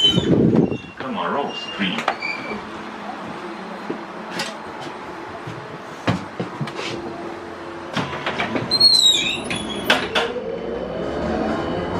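A trolleybus hums and rattles as it drives along.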